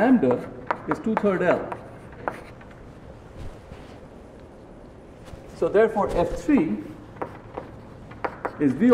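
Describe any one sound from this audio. A middle-aged man lectures calmly through a microphone in a large room.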